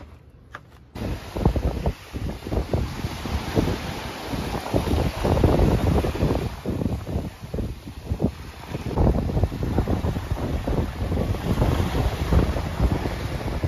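Wind gusts roughly across the microphone outdoors.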